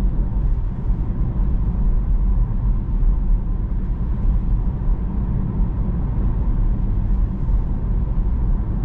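Tyres roll steadily on a road with a low rumble.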